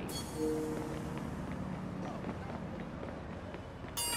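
A tram rumbles past nearby.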